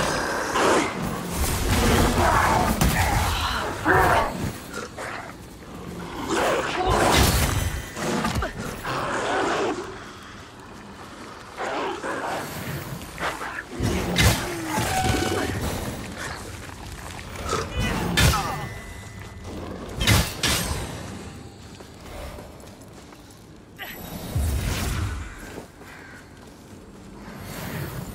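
Heavy blows thud in combat.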